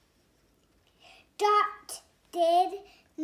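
A young girl speaks softly close by, reading out.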